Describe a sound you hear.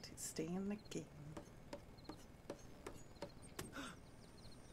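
A knife taps rapidly against a wooden table.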